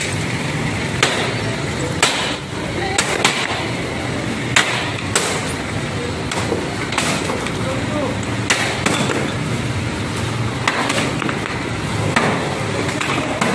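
A sledgehammer pounds on wood, cracking it apart.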